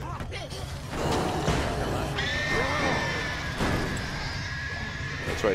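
A car crashes through a crowd with thumps.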